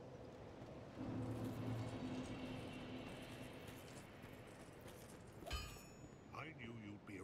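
Armoured footsteps thud and clank on the ground.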